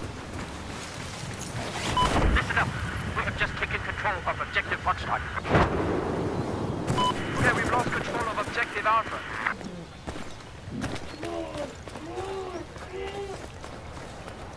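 Footsteps crunch quickly over rocky ground.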